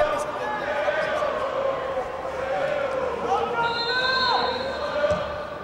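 A crowd of fans chants and sings in an open stadium.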